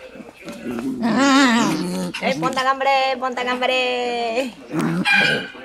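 A puppy yips and whines in high squeals.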